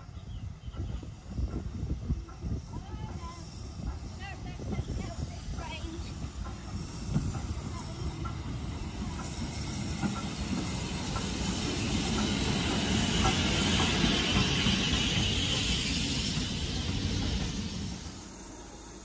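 A steam train approaches, chuffing, and rumbles past close by.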